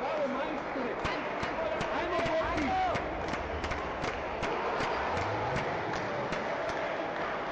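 A table tennis ball clicks quickly on a table and paddle.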